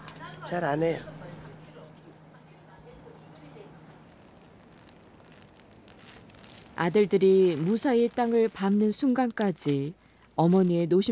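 A middle-aged woman speaks nearby in a calm voice.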